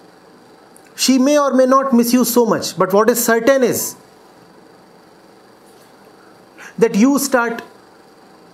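A middle-aged man speaks calmly and firmly into a close microphone.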